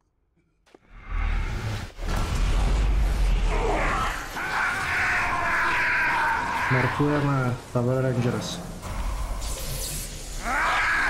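Lightning crackles and roars loudly.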